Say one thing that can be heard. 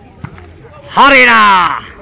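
A man yells out loudly nearby.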